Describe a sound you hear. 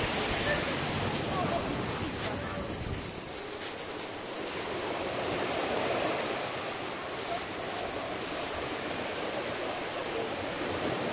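Waves wash gently onto a beach outdoors.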